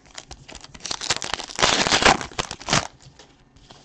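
A blade slices open a plastic wrapper with a short scratchy rasp.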